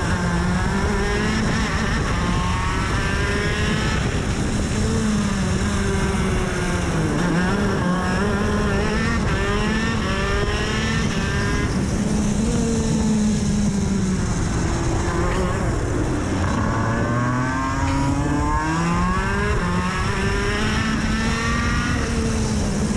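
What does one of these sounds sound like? A kart engine buzzes loudly up close, its pitch rising and falling with speed.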